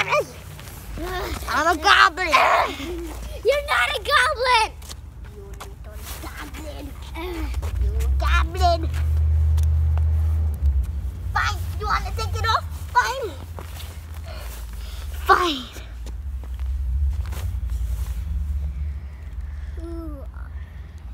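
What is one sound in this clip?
Young boys talk and shout excitedly close by.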